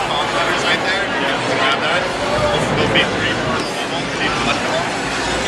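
A crowd chatters.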